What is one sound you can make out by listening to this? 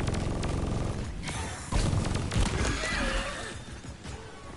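A gun fires rapid energy shots.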